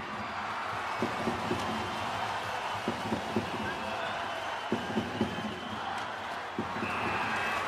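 Hockey sticks clack against a puck on the ice.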